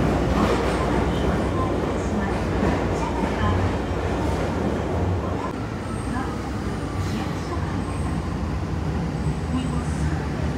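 A train rumbles and rattles along the tracks.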